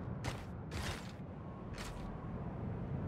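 Footsteps thud slowly on stone.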